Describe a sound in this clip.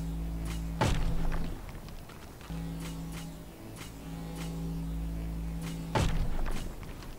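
Short clicks sound as items are picked up.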